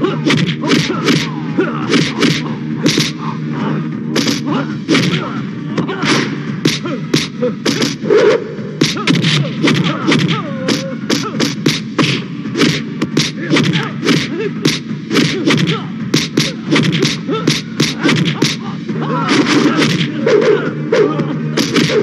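Punches and kicks land with sharp, repeated smacks.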